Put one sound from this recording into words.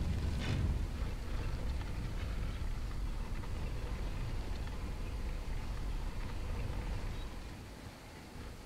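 A heavy stone block scrapes and grinds along a stone floor.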